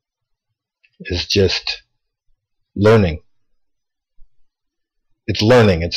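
A man speaks calmly in short bursts, close to a microphone.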